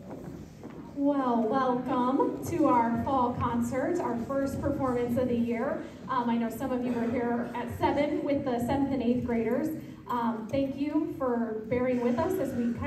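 A small group of young singers sings a lively song in a hall.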